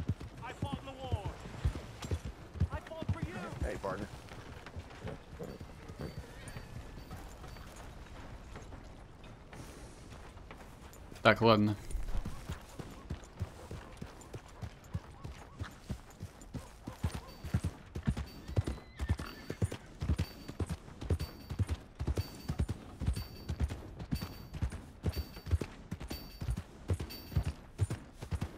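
Horse hooves clop steadily on dirt and grass.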